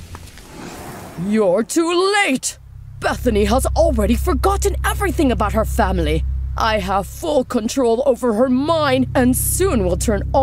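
A woman speaks with menace, her voice theatrical and close.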